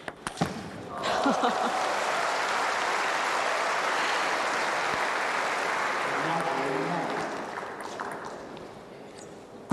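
A crowd applauds loudly in a large echoing hall.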